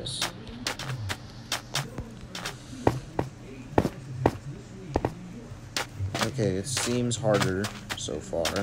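Footsteps tap quickly on a hard surface.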